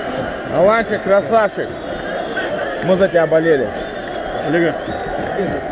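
A man speaks loudly and excitedly close by.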